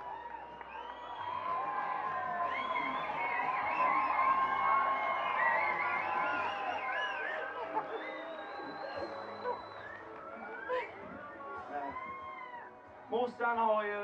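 A crowd cheers and whoops outdoors.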